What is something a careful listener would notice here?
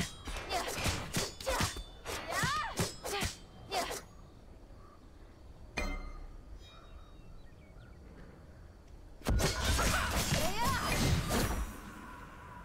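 A young man talks with animation into a microphone close by.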